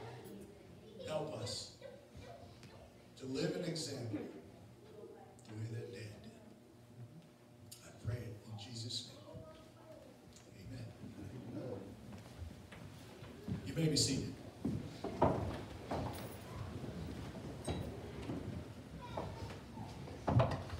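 A man speaks calmly at a distance in a large echoing hall.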